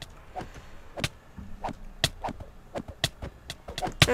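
Swords strike monsters in quick, sharp hits.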